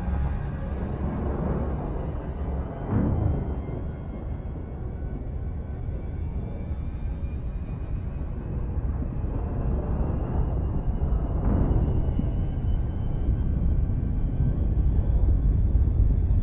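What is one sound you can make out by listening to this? A spaceship engine hums with a low, steady rumble.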